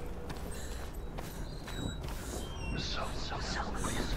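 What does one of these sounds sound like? Footsteps scuff slowly on stone.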